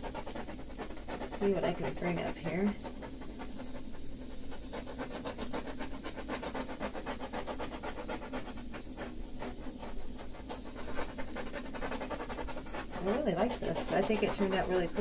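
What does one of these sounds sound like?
A cloth dabs and rubs softly on a smooth surface.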